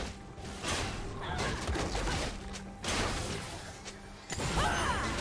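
Game spell effects whoosh and crackle in a fast fight.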